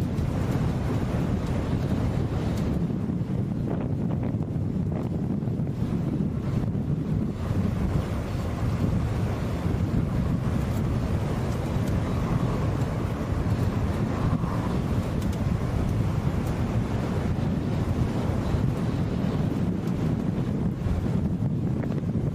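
Wind buffets the microphone outdoors with a steady low rumble.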